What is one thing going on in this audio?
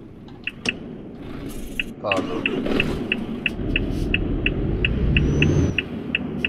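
A truck engine rumbles steadily and grows louder.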